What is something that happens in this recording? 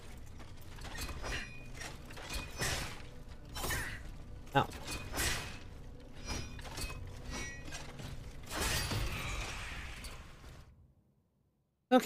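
Swords clash and strike with sharp metallic hits.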